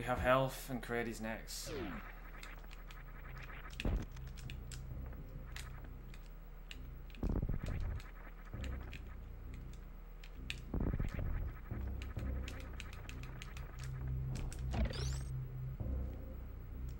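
Electronic video game sound effects beep and blast.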